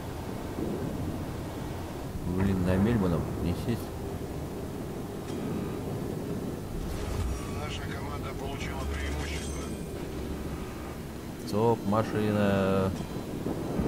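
Water rushes and splashes along a moving ship's hull.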